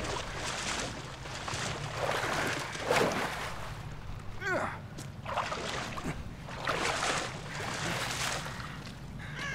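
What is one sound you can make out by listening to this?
Water splashes and sloshes as a man wades through it.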